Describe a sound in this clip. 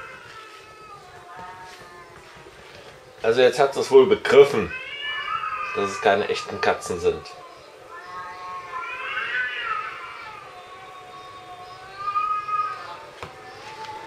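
A cat meows repeatedly, close by.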